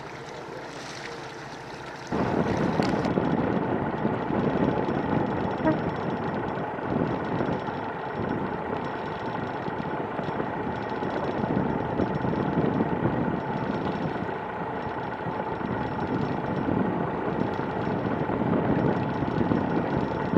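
Strong wind rumbles and buffets outdoors.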